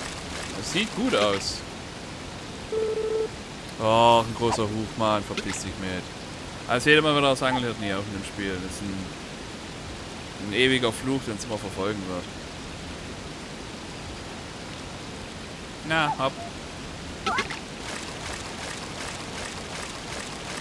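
A fishing lure plops into calm water.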